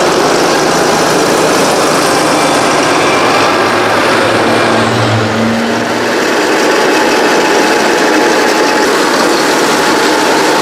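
A tractor engine rumbles loudly close by.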